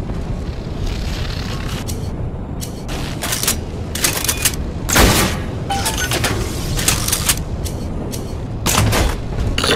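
Electricity crackles and buzzes in short bursts.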